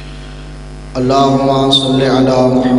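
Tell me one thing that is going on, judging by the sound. A man speaks loudly into a microphone, heard through a loudspeaker in a reverberant hall.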